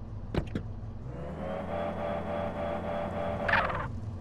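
A sports car engine revs up and roars as the car drives off.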